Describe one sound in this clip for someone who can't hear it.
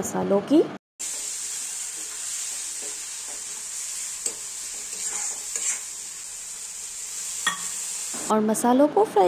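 Food sizzles in a hot pan.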